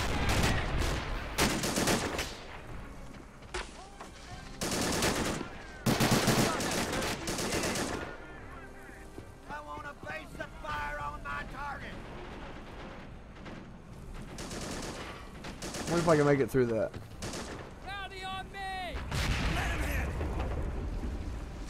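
Explosions boom and rumble in loud bursts.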